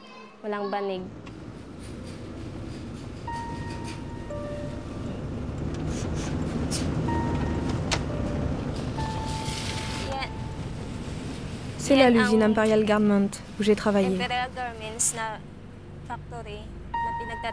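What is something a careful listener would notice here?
A car engine hums steadily with road noise inside the car.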